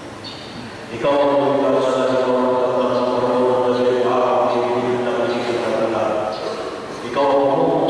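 A group of men and women sing a slow hymn together in a large echoing hall.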